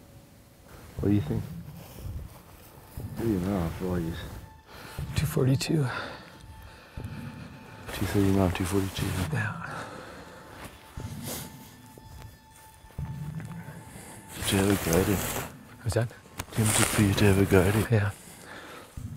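A man speaks quietly and calmly close by, outdoors.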